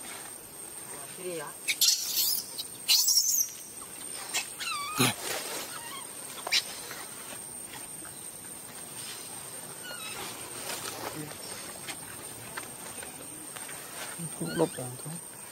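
A baby monkey squeals in short high cries.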